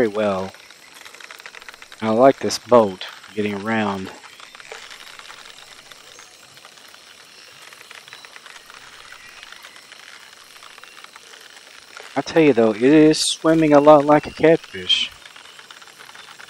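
A fishing reel whirs and clicks softly as line is wound in.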